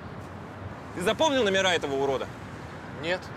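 A man speaks with surprise, close by.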